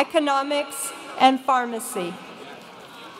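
A woman speaks calmly into a microphone over loudspeakers in a large hall.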